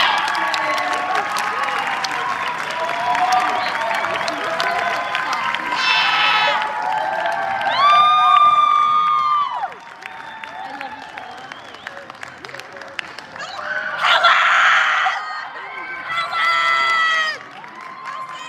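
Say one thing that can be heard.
A crowd of adults cheers and whoops loudly.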